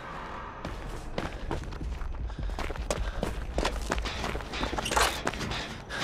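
Footsteps run quickly across the ground.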